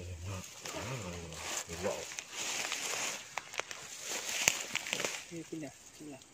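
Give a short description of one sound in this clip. Leaves and grass rustle as a person stands up and steps through them.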